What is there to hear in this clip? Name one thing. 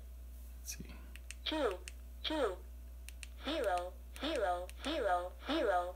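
Buttons on a handheld radio click as they are pressed.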